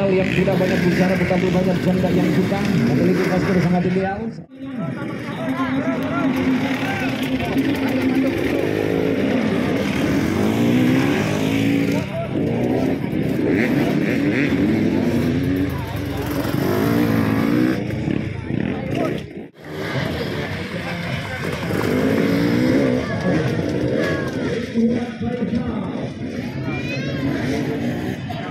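Dirt bike engines rev and idle loudly outdoors.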